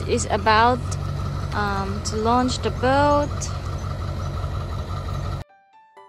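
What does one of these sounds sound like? A pickup truck's engine rumbles as it tows a boat trailer past.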